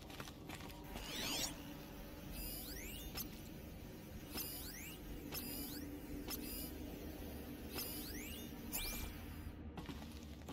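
An electronic scanner chirps with quick rising tones.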